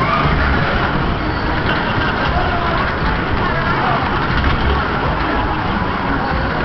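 Loud fairground music plays through loudspeakers.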